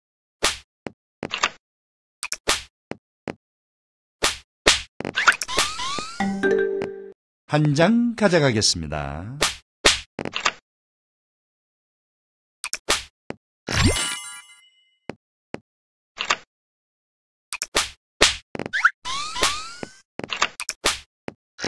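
Game cards snap down onto the table with sharp clicks.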